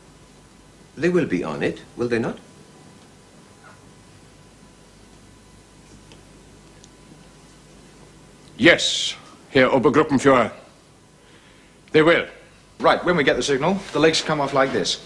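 A man speaks firmly and clearly, close by.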